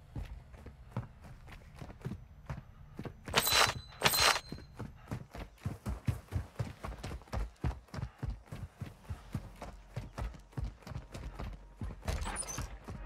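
Quick footsteps thud on wooden floorboards in a video game.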